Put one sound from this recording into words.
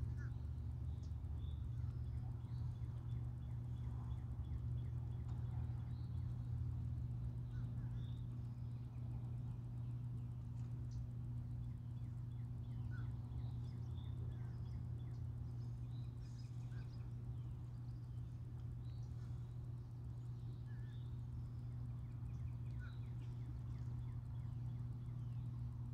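A distant rumble of water pours steadily through a dam.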